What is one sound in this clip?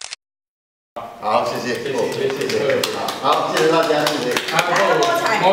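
A small crowd applauds with quick clapping.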